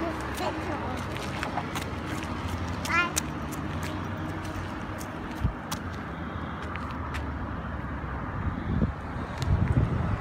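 Small footsteps patter on pavement.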